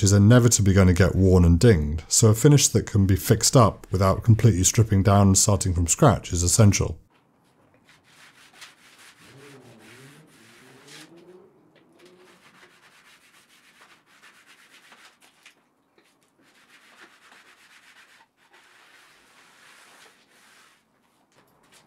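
A cloth rubs softly across a wooden board.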